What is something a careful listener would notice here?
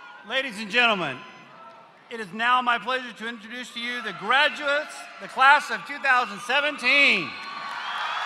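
A man speaks through a loudspeaker in a large echoing hall.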